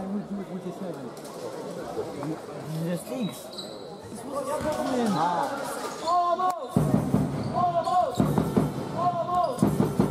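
Young men call out to each other across an echoing sports hall.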